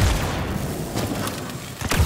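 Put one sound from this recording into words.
Electric crackling sparks and buzzes.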